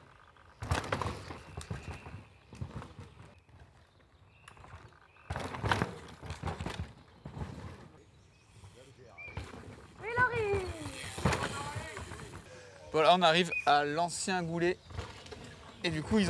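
Bike tyres skid and rattle over loose dirt.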